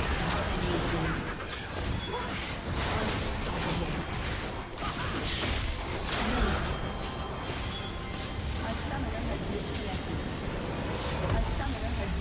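Game spell effects crackle and burst in a fast fight.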